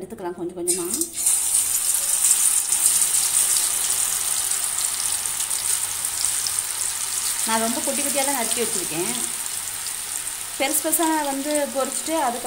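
Hot oil sizzles and crackles loudly.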